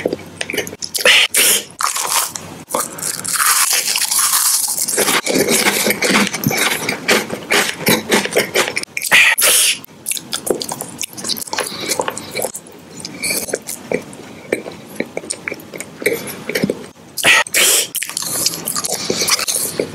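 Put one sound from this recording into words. A mouth chews wetly and smacks its lips, very close.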